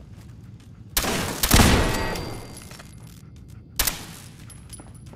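A rifle fires loud shots in an echoing space.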